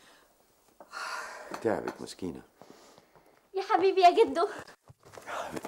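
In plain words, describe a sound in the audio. A young girl sings out.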